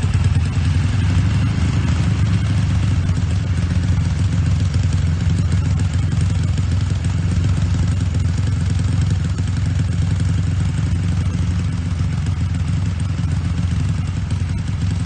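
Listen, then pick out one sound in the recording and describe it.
A motorcycle engine idles with a deep, steady, throbbing burble from its exhaust.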